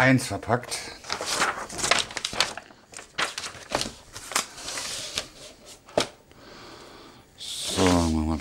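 Stiff paper rustles and crinkles close by.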